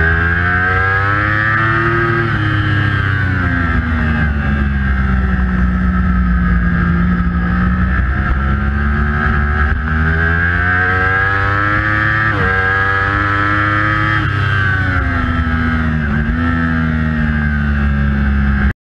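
A motorcycle engine roars loudly, rising and falling in pitch as it revs and shifts gears.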